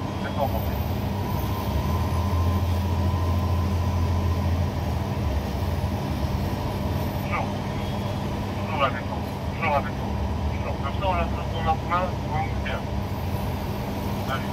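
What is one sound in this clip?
A crane's motor hums steadily.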